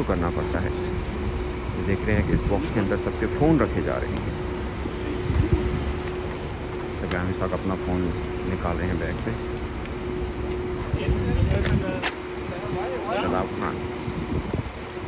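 Men talk nearby in low voices.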